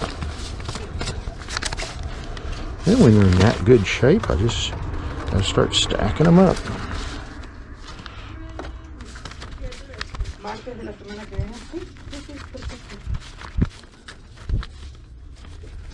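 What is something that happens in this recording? Paper record sleeves rustle and slide against each other as they are flipped through by hand.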